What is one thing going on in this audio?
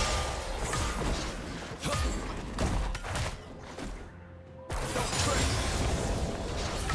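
Sword strikes and magic blasts clash in a fast video game fight.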